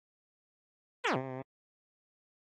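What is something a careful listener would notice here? A short electronic chime beeps.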